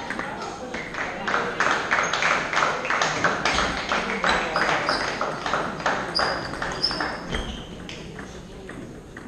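A ping-pong ball clicks back and forth between paddles and table in an echoing hall.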